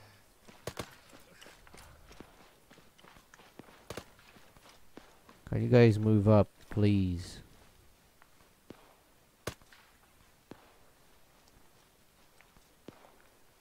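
Footsteps crunch quickly over gravel and dry grass.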